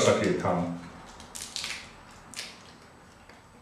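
A man chews food with crunching sounds.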